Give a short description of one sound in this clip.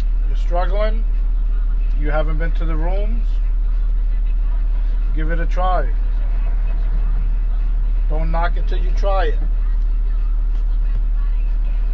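An engine hums low and steadily inside a vehicle.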